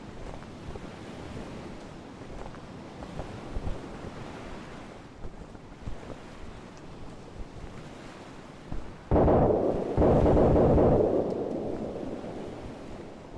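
A parachute canopy flutters in the wind.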